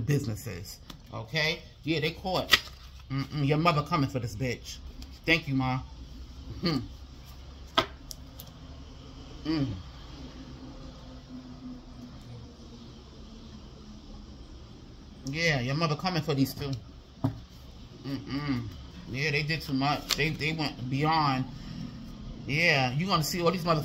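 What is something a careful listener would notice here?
Paper cards rustle and flick as they are shuffled by hand.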